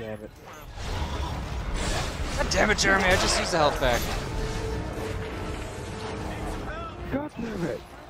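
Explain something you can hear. A monstrous creature screeches and growls.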